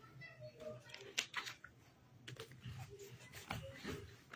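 Plastic packets crinkle as they are handled.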